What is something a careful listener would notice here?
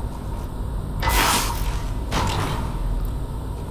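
A heavy wooden chest creaks open with a rushing whoosh.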